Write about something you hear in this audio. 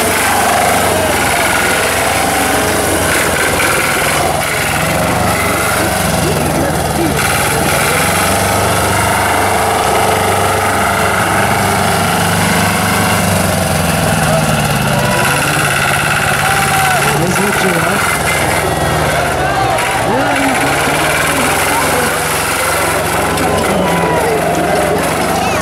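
A small engine roars and revs unevenly nearby.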